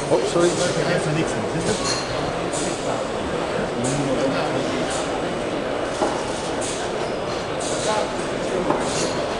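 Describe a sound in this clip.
A crowd of people chatters steadily in a large, busy hall.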